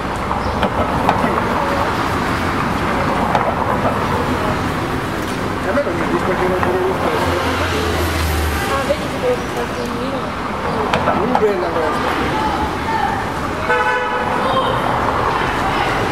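Tyres roll over cobblestones.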